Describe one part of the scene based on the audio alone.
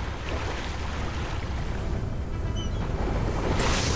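A pickaxe swings through the air with a whoosh.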